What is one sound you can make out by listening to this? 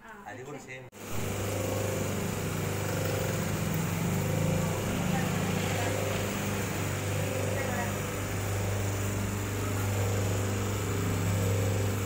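A machine motor hums and whirs steadily.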